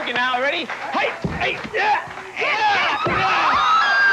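A man thuds onto the floor.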